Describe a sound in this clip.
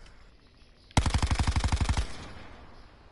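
Rapid gunfire rattles in a short burst.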